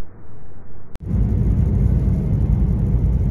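A car drives along a road with a low rumble.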